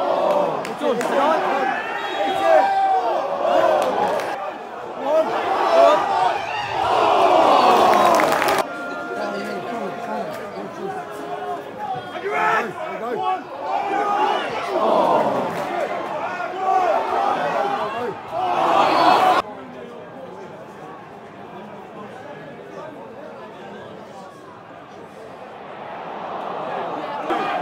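A large stadium crowd sings and chants loudly nearby.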